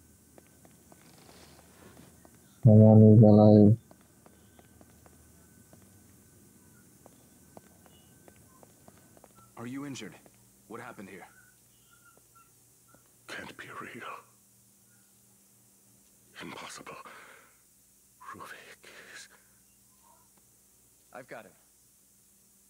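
A young man speaks through a headset microphone.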